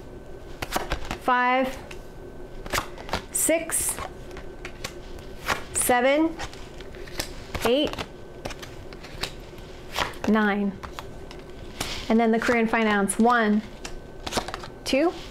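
Cards flick and snap as they are shuffled.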